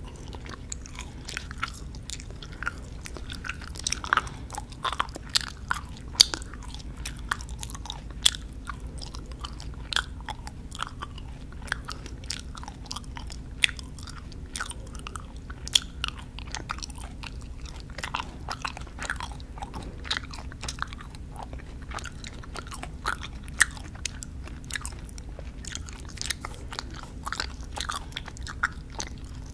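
A young woman whispers softly, very close to a microphone.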